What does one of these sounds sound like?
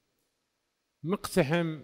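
An elderly man speaks calmly through a headset microphone.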